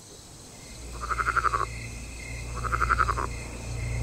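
A frog croaks in short, quick pulsing bursts.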